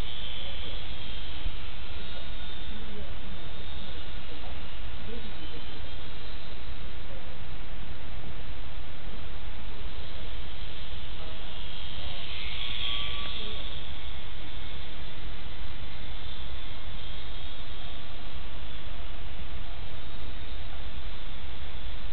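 A small propeller plane's engine buzzes overhead, growing louder as it passes close and then fading.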